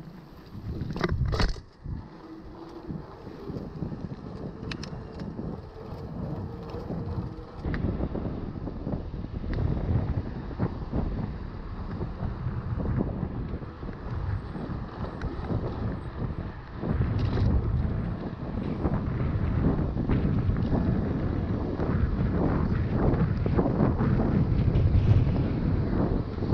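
Bicycle tyres hum on the road surface.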